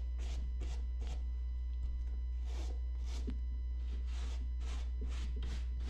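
A brush scrubs back and forth over a leather bag in short, rhythmic strokes.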